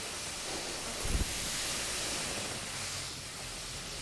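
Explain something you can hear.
A fire extinguisher sprays with a loud, steady hiss.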